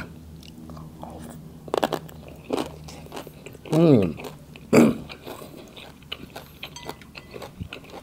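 A man chews and slurps food noisily close to a microphone.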